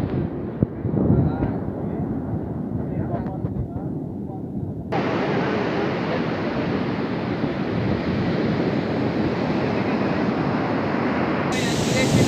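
Waves crash and roar on a shore nearby.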